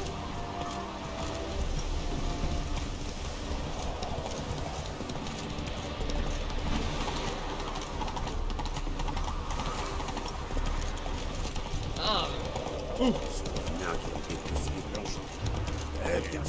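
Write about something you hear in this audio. A horse's hooves gallop steadily over the ground.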